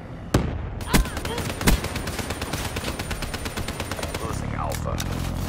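A gun fires rapid bursts close by.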